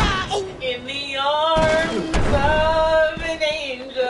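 A body thuds onto a hard floor.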